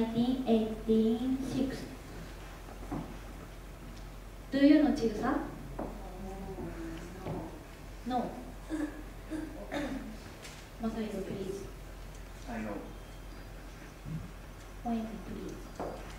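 A young woman speaks calmly through a microphone.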